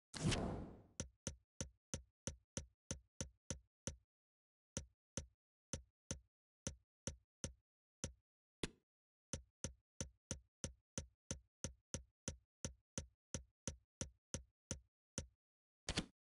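Short electronic menu clicks tick in quick, even succession.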